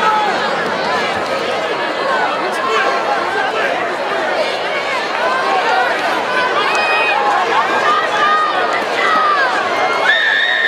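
A large crowd cheers and chatters loudly in an open stadium.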